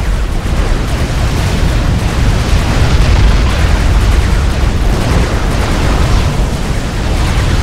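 Explosions boom over a constant low battle rumble.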